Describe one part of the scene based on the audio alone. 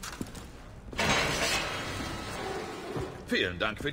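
A heavy cell door creaks open.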